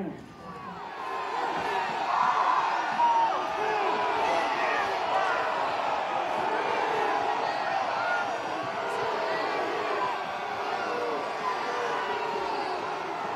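A large crowd shouts and roars outdoors.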